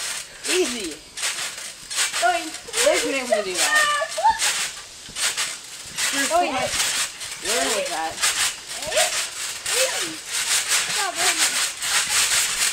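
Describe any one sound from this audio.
Children bounce on a trampoline.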